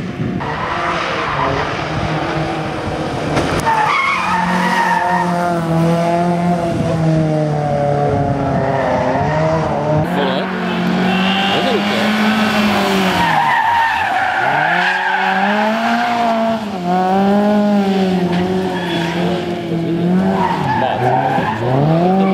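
A rally car engine revs hard and roars past.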